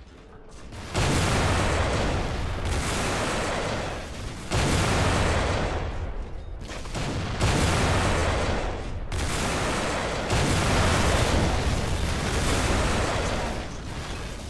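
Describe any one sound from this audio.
Heavy guns fire in long, roaring bursts.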